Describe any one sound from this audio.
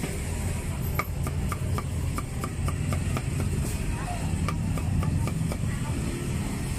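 A cleaver chops rapidly on a wooden board.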